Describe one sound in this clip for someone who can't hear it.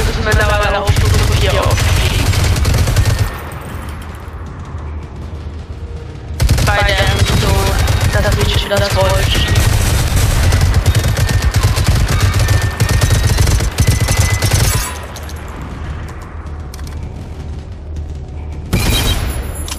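A machine gun fires long, rapid bursts.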